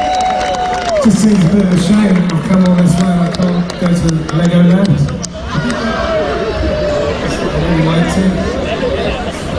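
A man sings into a microphone over the music.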